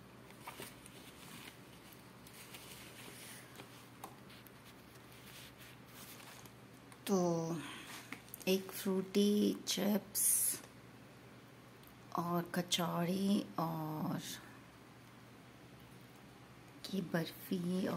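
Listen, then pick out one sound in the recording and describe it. A thin plastic food box crinkles as it is handled.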